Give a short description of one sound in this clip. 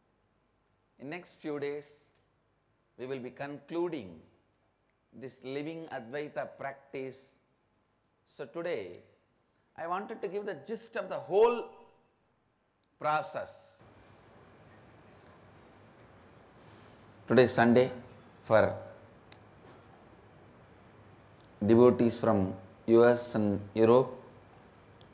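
A man speaks calmly into a microphone in short phrases, with pauses.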